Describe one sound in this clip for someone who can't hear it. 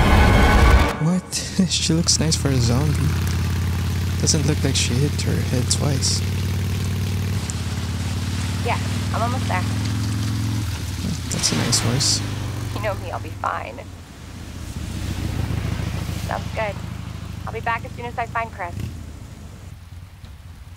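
A motorcycle engine idles and rumbles steadily, then pulls away.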